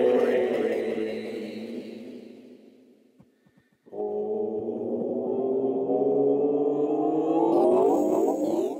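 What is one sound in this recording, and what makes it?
A tablet plays warm electronic chord tones that fade away, then swell again.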